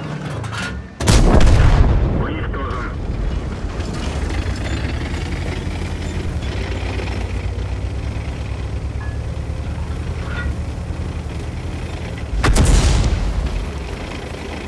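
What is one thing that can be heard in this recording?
A tank cannon fires with a loud boom that echoes away.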